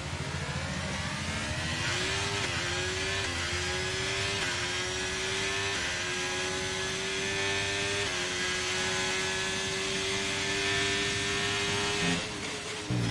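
A racing car engine screams at high revs, rising in pitch and dropping briefly with each quick gear change.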